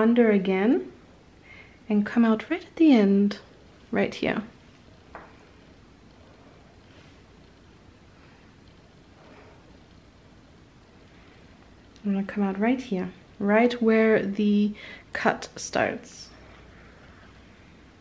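Thread rustles softly as it is pulled through cloth.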